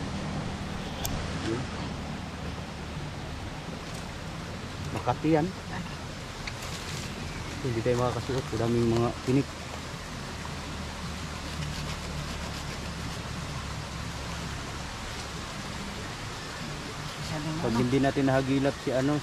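Dry leaves rustle and crackle close by.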